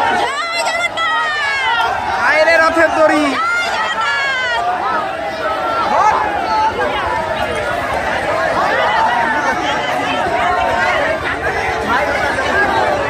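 A large crowd of young men shouts and cheers loudly outdoors.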